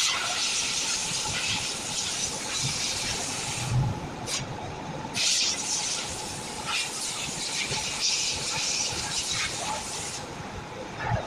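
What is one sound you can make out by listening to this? A winding machine whirs and hisses as wire runs onto a reel.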